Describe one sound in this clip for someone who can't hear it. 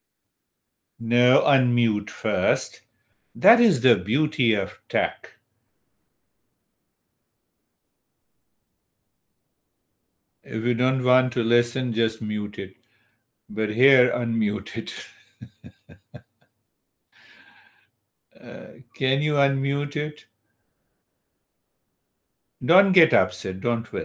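An elderly man speaks calmly over an online call, with pauses.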